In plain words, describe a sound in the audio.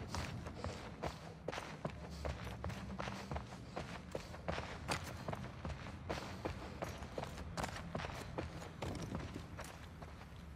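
Footsteps patter quickly across a carpeted floor.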